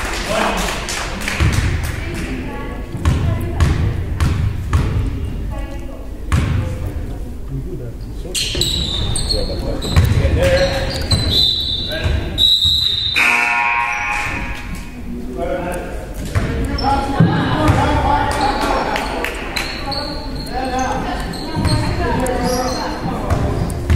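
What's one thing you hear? Young players and spectators shout and call out across an echoing gym.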